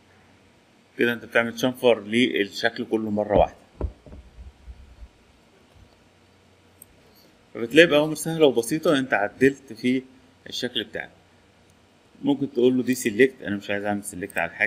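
A man speaks calmly into a microphone, explaining at close range.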